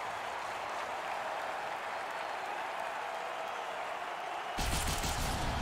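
A large crowd murmurs and cheers in a big echoing arena.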